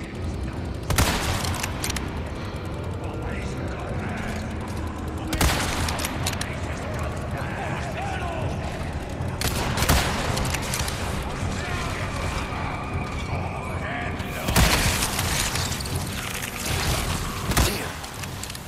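A rifle fires loud single shots that echo.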